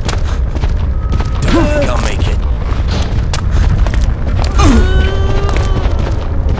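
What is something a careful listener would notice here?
A zombie groans and moans nearby.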